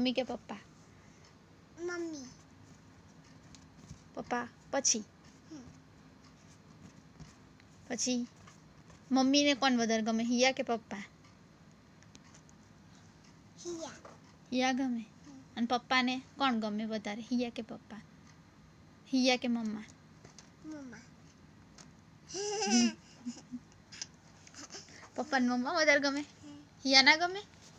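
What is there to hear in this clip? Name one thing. A young girl talks playfully close by, in short bursts.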